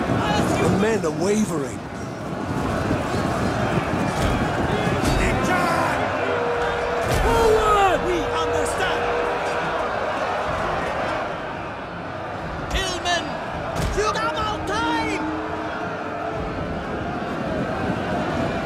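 A large army marches with a dense, rumbling clatter.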